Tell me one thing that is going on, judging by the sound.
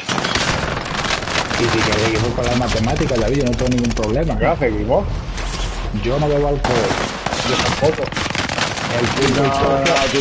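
A rifle fires in quick bursts.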